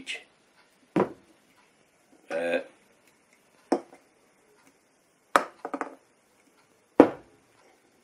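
A glass knocks down onto a counter.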